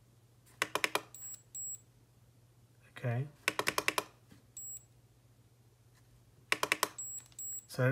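An electronic device plays a quick series of beeps.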